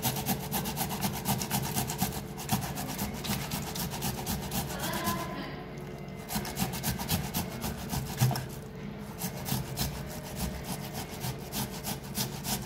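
A tomato rasps rapidly against a metal grater.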